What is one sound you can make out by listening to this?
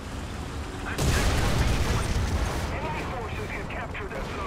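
A loud explosion booms and roars.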